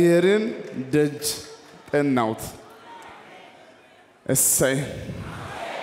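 A man speaks loudly and with animation through loudspeakers in a large echoing hall.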